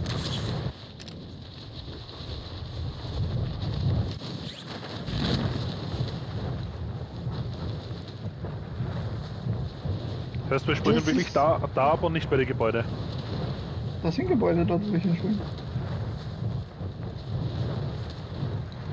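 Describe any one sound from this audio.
Wind rushes steadily during a parachute descent.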